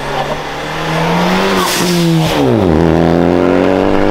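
A car drives past up close with a roaring exhaust.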